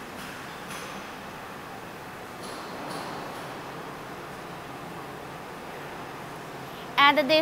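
Heavy machinery hums steadily in a large hall.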